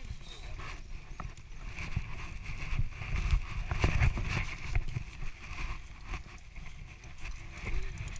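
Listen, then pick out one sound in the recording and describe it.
Tall grass and branches brush and swish against a bicycle.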